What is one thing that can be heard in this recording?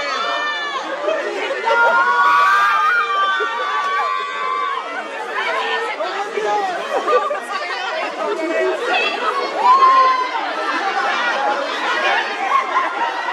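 A crowd of young women and men shout and call out excitedly nearby.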